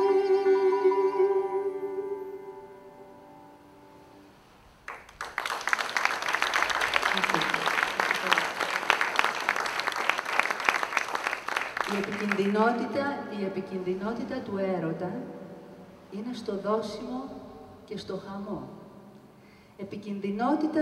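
A guitar is plucked.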